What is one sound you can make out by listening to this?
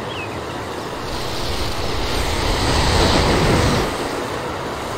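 Broomstick riders whoosh past at speed, the rush swelling and fading.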